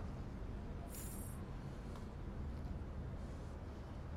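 A magazine page is turned with a soft swish.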